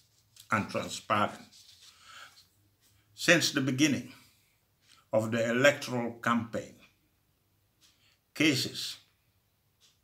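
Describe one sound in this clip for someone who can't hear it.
An elderly man speaks slowly and calmly into a microphone close by, in short phrases with pauses.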